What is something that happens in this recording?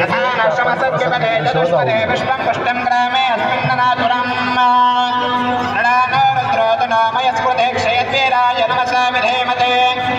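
Loud music with a wavering melody plays through loudspeakers.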